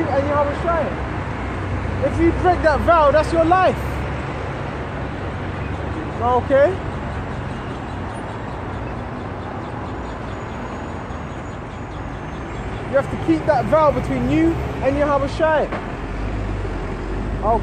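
A man calls out loudly in short bursts close by, outdoors.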